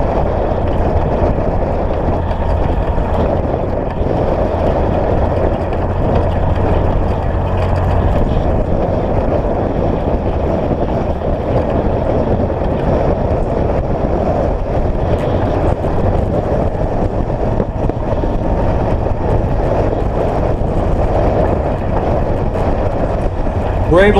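Tyres crunch and rumble over gravel.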